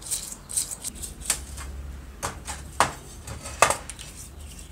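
A paintbrush scrubs a metal casing with short bristly strokes.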